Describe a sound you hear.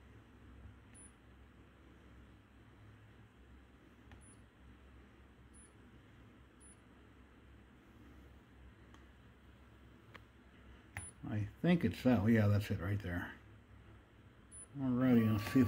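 A touchscreen gives a short high beep with each press.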